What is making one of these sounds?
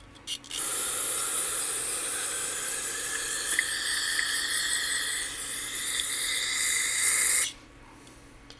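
An aerosol can sprays with a steady, loud hiss.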